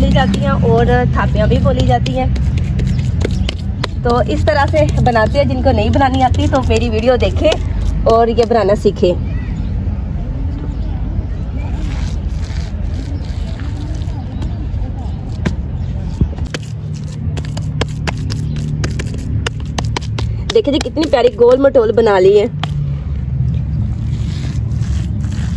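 Hands pat and press soft wet dung onto the ground.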